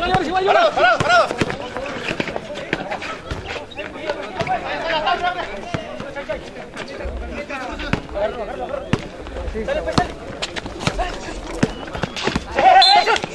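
A crowd of men shout and cheer outdoors.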